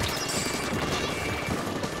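A squishy splat sounds as an opponent bursts into ink.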